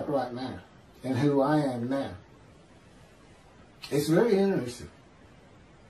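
A middle-aged man speaks calmly and haltingly over an online call.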